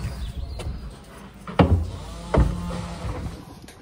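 Boots thud on a boat's deck.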